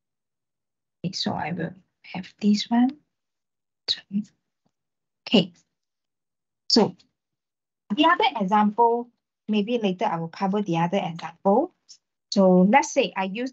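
A young man speaks calmly over an online call, with pauses.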